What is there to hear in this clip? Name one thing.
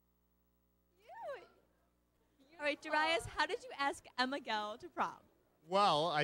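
A young woman speaks excitedly into a nearby microphone.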